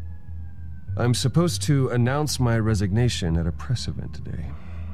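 A man speaks in a low, tired voice close by.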